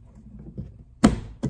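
A plastic panel snaps off with a sharp crack.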